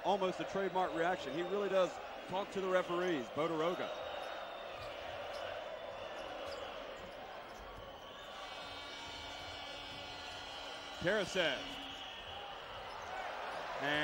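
A large crowd murmurs and cheers steadily in a big echoing arena.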